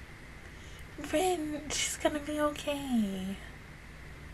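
A young woman speaks briefly and softly close to a microphone.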